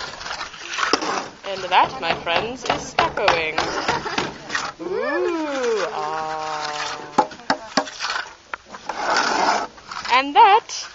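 A trowel scrapes across wet plaster.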